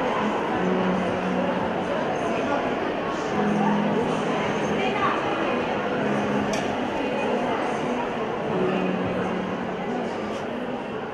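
Several young women chatter and talk over one another close by.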